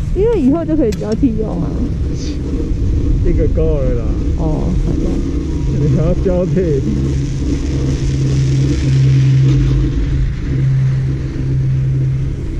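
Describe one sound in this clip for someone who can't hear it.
Wind rumbles steadily against the microphone.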